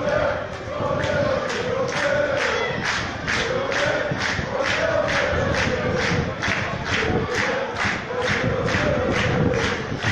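A crowd claps hands in a fast, steady rhythm.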